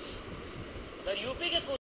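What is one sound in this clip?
A man speaks calmly and clearly through a television loudspeaker.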